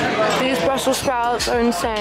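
Cutlery clinks on a plate.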